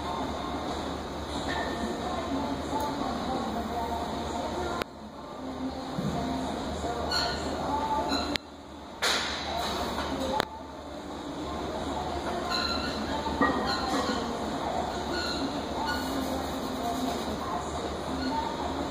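A loaded barbell clanks against the rack.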